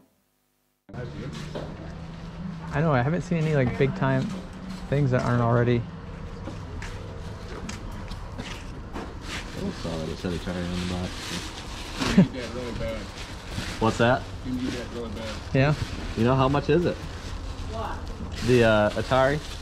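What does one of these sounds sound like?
A man talks casually close by, outdoors.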